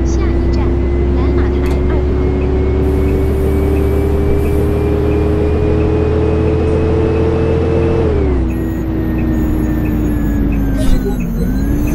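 A bus engine hums and whines steadily, its pitch rising slowly and then dropping as the bus slows.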